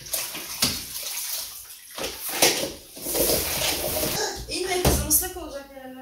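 A mop swishes and scrubs across a hard floor.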